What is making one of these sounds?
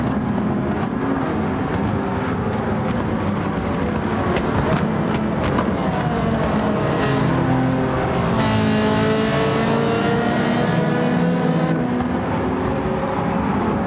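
Several racing car engines roar loudly, rising and falling in pitch as they speed up and slow down.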